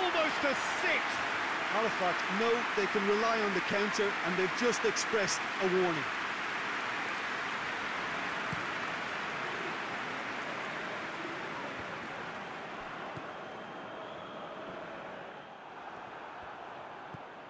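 A large stadium crowd roars steadily, then slowly dies down.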